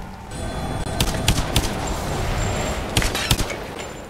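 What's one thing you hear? Loud game combat hits thud and clang several times.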